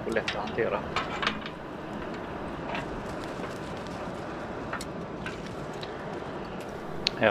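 Metal tongs clink and scrape against burning coal.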